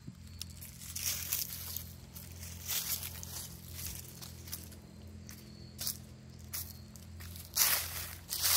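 Footsteps rustle through dry leaves outdoors.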